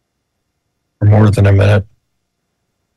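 A man speaks briefly through a microphone.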